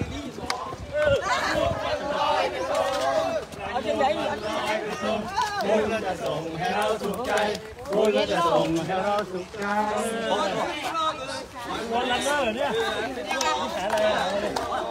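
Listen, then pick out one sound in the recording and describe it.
A group of men and women talk and call out with animation close by.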